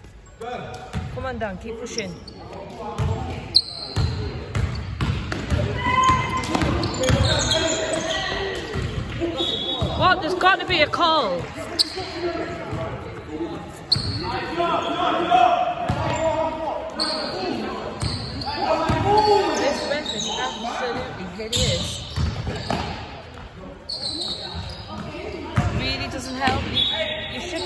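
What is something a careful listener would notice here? Teenage boys shout to each other in an echoing hall.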